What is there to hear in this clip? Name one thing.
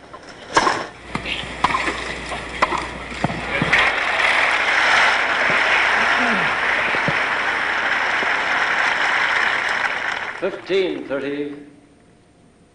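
A large crowd applauds and cheers loudly, then falls quiet.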